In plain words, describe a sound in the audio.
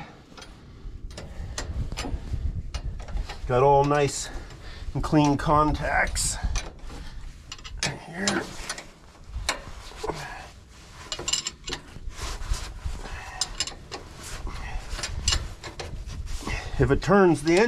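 A metal wrench clinks and taps against metal.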